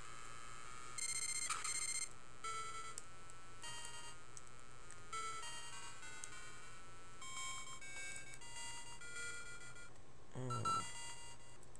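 Short electronic game sound effects chirp and blip.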